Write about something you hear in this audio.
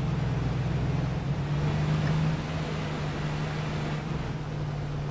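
A truck engine hums steadily while driving over rough ground.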